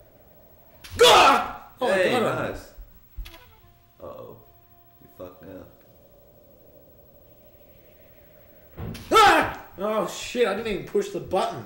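A cartoon sword swishes in a video game.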